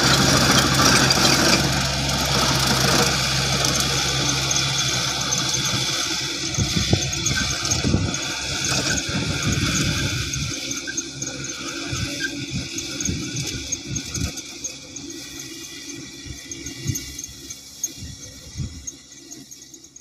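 A tractor engine rumbles steadily and fades as it moves away.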